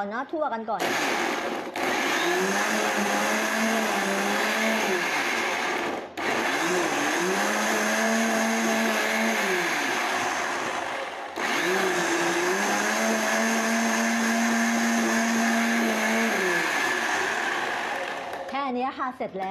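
A blender motor roars loudly, pausing briefly twice and changing pitch.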